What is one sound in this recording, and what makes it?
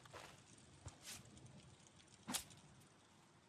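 Heavy blows thud against a body.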